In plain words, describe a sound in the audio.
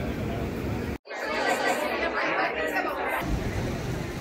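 A crowd of people chatters loudly.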